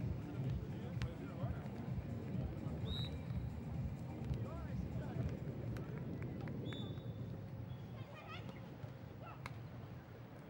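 A volleyball is struck with sharp slaps during a rally.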